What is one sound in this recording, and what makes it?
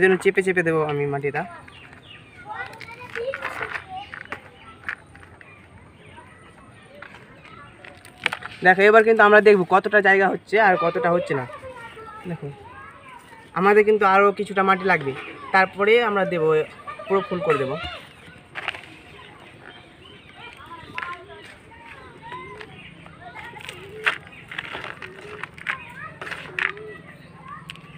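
Hands rub and crumble dry soil.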